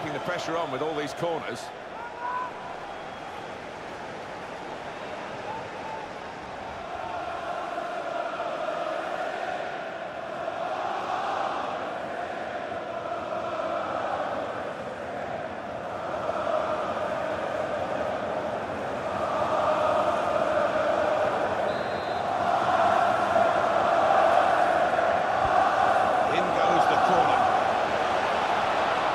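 A stadium crowd roars and chants steadily, swelling louder over time.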